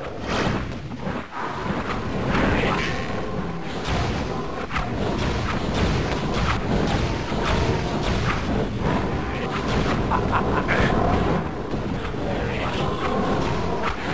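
A game weapon fires fiery blasts again and again.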